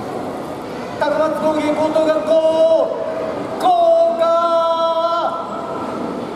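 A young man shouts out long, drawn calls in an echoing hall.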